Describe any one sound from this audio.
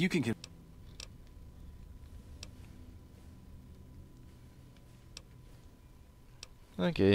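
Soft electronic clicks sound as a menu selection changes.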